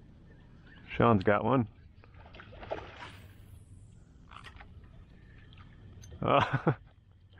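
A man calls out loudly across open water.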